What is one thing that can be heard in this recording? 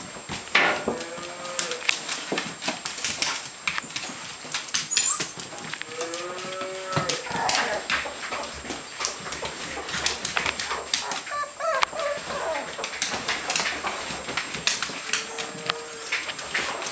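Puppies whimper and yelp in high, sliding cries.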